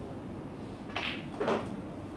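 A snooker cue strikes a ball with a sharp click.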